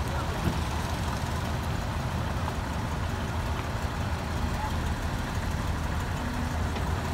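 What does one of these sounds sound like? A heavy truck rumbles along the road.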